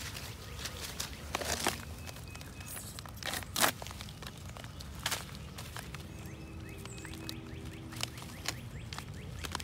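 A plastic food pouch crinkles and rustles in someone's hands.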